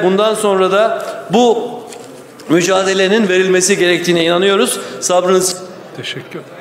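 A middle-aged man speaks forcefully and loudly into a microphone in a large hall.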